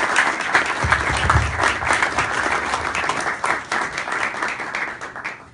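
Hands clap in lively applause.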